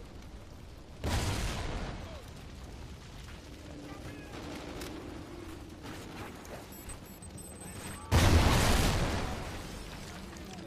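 Loud explosions boom nearby.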